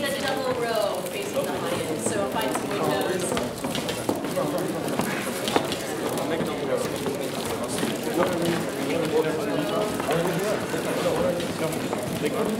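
A large mixed choir sings together in an echoing hall.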